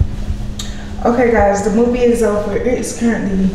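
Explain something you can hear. A young woman speaks casually and close to a microphone.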